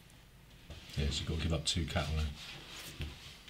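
A man with a deep voice talks calmly into a microphone.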